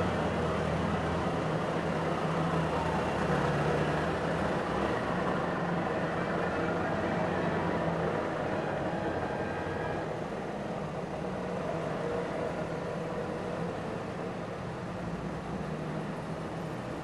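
Small old cars with buzzing two-stroke engines putter past one after another, close by.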